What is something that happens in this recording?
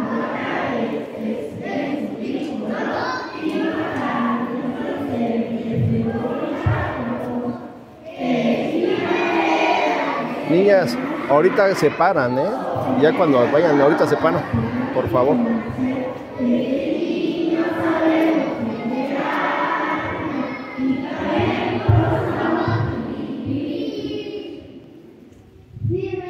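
A crowd of people talk and murmur nearby in a large echoing space.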